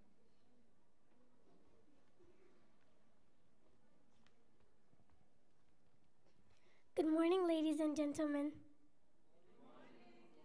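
Children murmur quietly in a large hall.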